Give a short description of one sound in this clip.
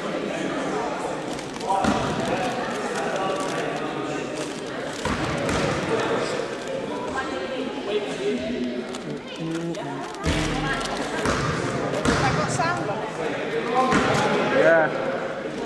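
A basketball bounces with echoing thuds.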